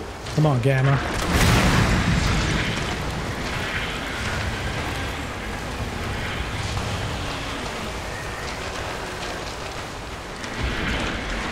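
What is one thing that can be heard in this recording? A flamethrower roars in a burst of fire.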